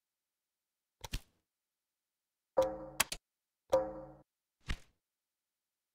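Short game menu clicks and chimes sound now and then.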